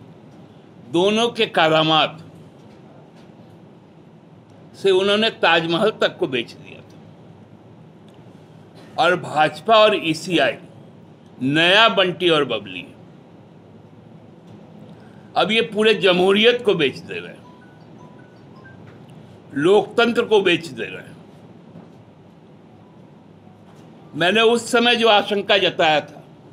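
A middle-aged man speaks calmly into microphones close by, in short bursts with pauses.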